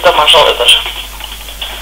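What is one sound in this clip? A boy talks close to a microphone.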